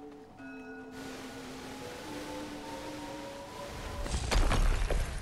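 A gust of wind whooshes with blowing snow.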